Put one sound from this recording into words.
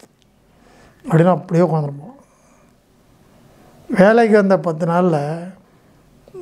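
An elderly man speaks calmly and close to a clip-on microphone, in short phrases with pauses.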